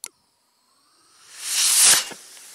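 A small rocket roars loudly as it launches close by.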